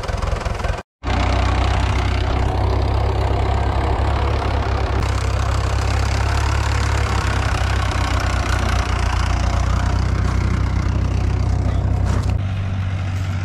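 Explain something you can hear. A tractor engine runs steadily nearby.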